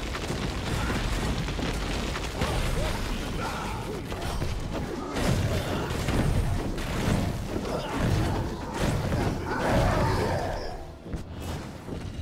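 Magic blasts explode with a whoosh.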